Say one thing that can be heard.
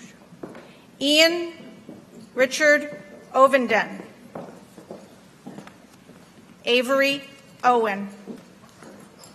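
A woman reads out in short, loud phrases over a loudspeaker in a large hall.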